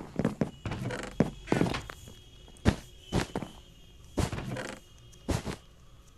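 Blocks are set down with short soft knocks.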